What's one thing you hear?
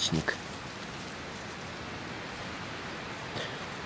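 A mushroom stem snaps as it is pulled from the ground.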